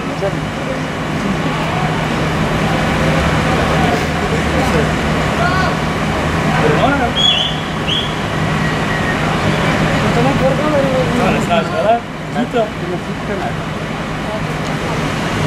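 A fire truck engine idles with a steady low hum.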